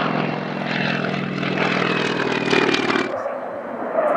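A propeller plane's engine drones steadily overhead.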